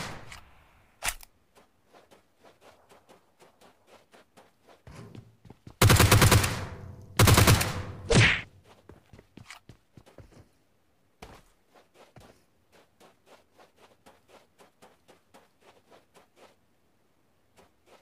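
Footsteps patter steadily across the ground.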